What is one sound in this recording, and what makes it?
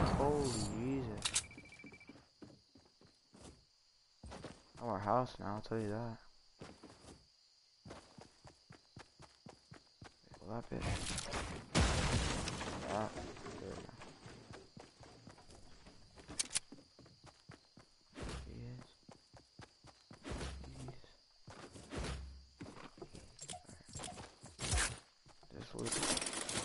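Quick footsteps run over grass and stone.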